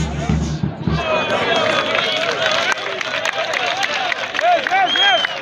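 A group of young men cheer and chant outdoors.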